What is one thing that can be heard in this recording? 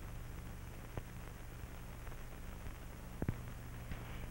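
A machine's switches click.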